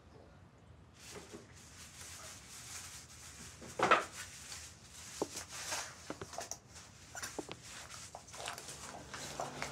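Plastic shoe covers rustle and crinkle close by.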